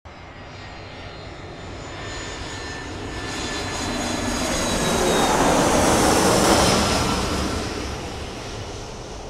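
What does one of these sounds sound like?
A jet plane roars as it flies past, swelling and then fading.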